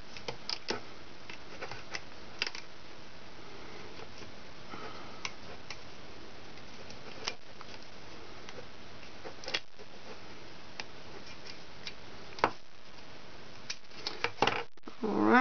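Small plastic pieces click and tap as hands handle them.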